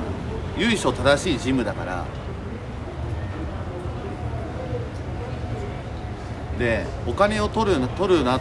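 A young man talks casually close to the microphone.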